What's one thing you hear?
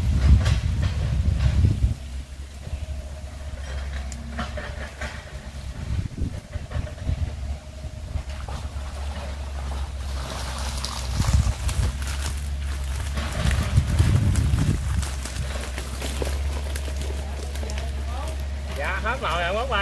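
A man shakes out a net with rustling and swishing.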